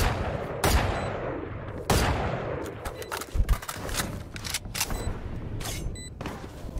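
Gunshots crack loudly in a video game, ringing out after each shot.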